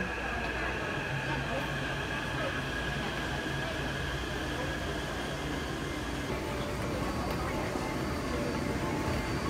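A stopped subway train hums steadily.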